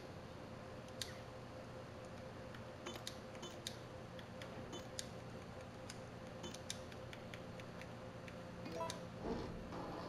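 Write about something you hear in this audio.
Electronic keypad buttons beep as a code is entered.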